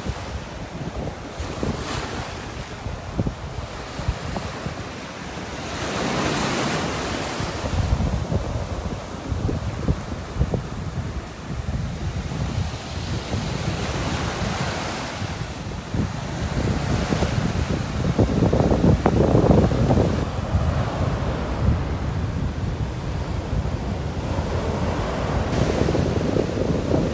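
Small waves break and wash up onto a sandy shore, outdoors in a light wind.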